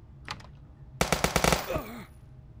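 Rapid gunshots fire in a short burst.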